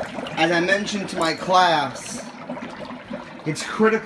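Dry ice bubbles and fizzes in hot water.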